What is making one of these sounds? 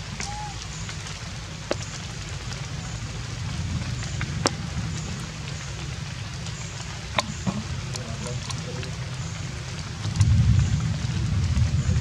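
A monkey chews and crunches food up close.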